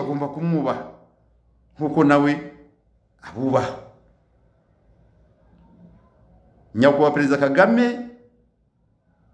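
A middle-aged man speaks calmly in short phrases, close to the microphone.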